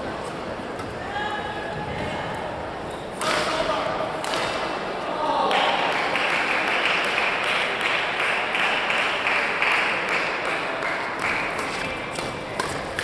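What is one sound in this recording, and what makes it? Sports shoes squeak sharply on a court floor in a large echoing hall.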